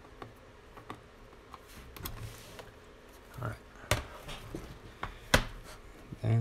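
A laptop is turned over and set down with soft knocks.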